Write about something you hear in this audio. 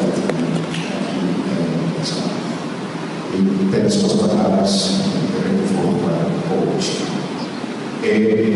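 A man speaks steadily into a microphone, heard through loudspeakers in an echoing hall.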